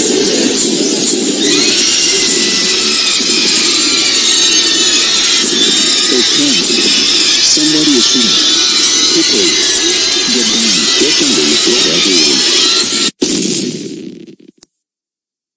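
A crowd of children's voices shouts and sings together loudly.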